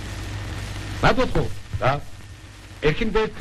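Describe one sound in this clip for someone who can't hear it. A young man speaks briskly, close by.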